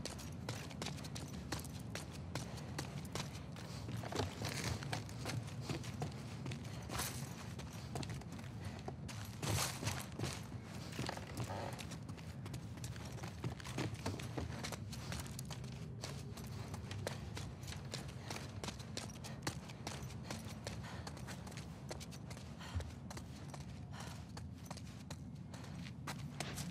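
Footsteps tap on a hard floor, with many quick clicks.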